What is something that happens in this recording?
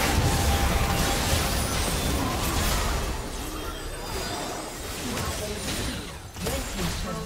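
Game spell effects and hits crackle and clash in a busy fight.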